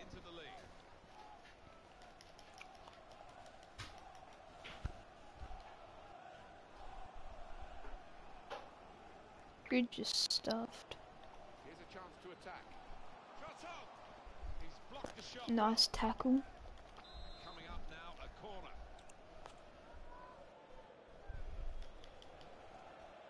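A stadium crowd murmurs and cheers.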